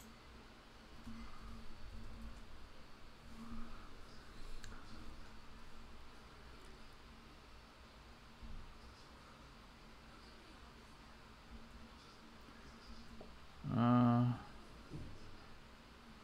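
A young man speaks quietly and calmly into a microphone.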